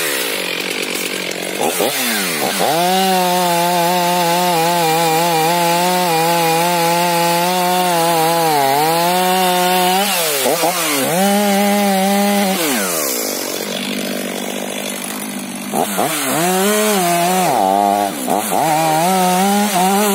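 A chainsaw engine revs and roars up and down, close by.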